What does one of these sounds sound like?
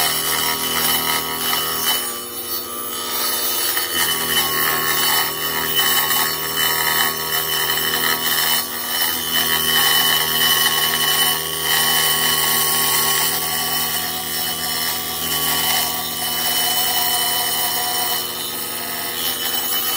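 A table saw runs with a loud, steady whine.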